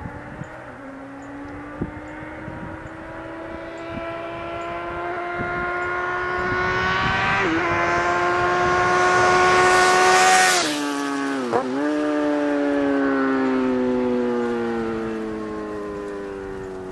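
A motorcycle approaches with a rising engine hum, roars past close by and fades away.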